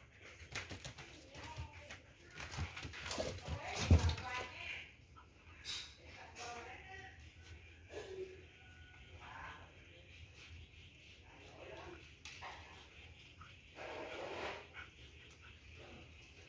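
Small dogs shuffle and rustle on cardboard and sacking.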